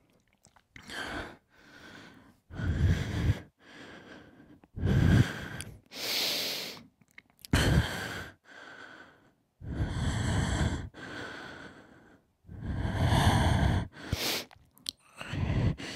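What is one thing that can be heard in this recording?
A young man beatboxes close into a microphone, with deep thumping bursts and hissing sounds.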